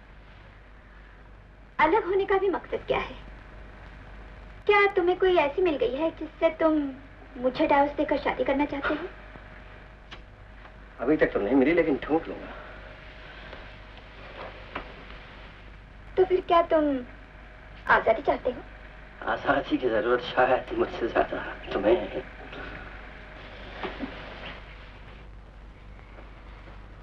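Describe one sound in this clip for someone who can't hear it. A woman speaks softly, close by.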